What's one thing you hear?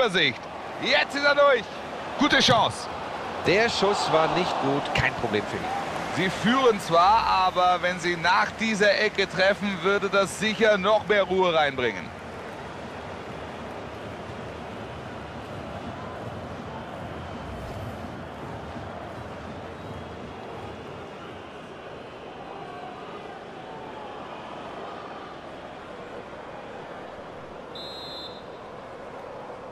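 A large crowd murmurs and chants steadily in a stadium.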